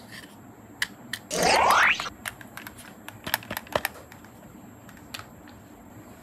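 Plastic toys click and clatter against a plastic basket.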